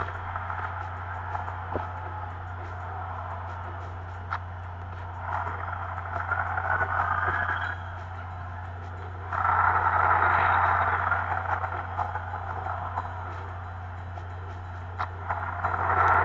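A crowd cheers and roars steadily, swelling louder at times.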